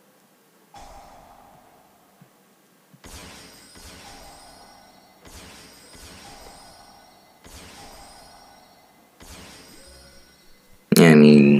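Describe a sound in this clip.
A game's soft chime sounds again and again.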